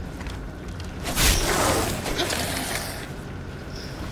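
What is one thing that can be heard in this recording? A heavy body drops onto rocky ground with a wet splat.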